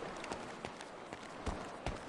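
Footsteps run across hard ground.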